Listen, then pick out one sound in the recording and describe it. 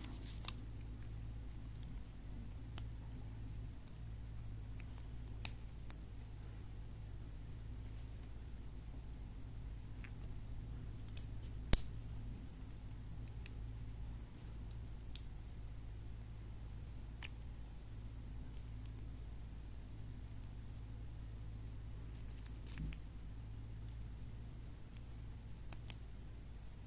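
Small plastic toy bricks click and snap together in someone's hands.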